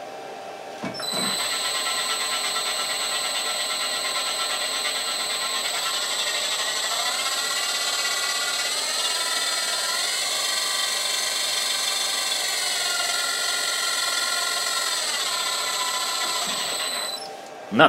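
An electric spindle motor whirs with a high steady whine that rises and falls slightly in pitch.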